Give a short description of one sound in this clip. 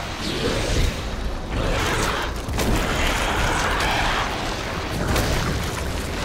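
A monstrous creature growls and snarls deeply.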